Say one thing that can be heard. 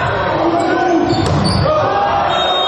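A volleyball is spiked with a sharp slap.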